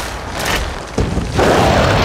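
A gunshot cracks.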